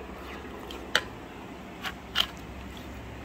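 A metal spoon clinks against a pan.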